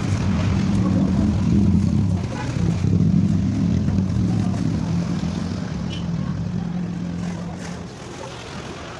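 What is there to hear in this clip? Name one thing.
Traffic rumbles by on a nearby street.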